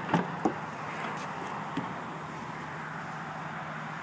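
A car's rear hatch unlatches and swings open.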